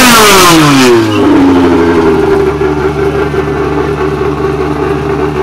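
Tyres screech as they spin on the track.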